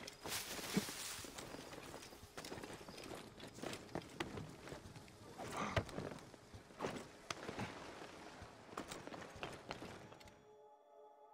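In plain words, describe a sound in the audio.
Footsteps patter quickly over stone and tiles.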